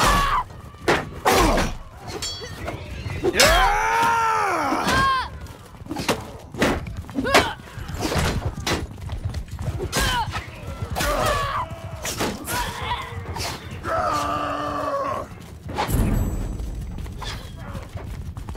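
Blades clash and strike in a melee fight.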